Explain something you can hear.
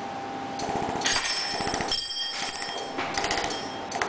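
Small metal parts clink softly on a hard tabletop.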